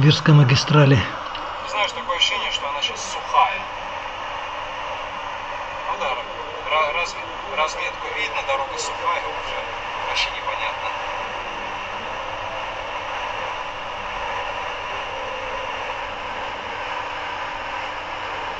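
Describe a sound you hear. A car drives steadily along a road, with a low, even rumble of tyres and engine.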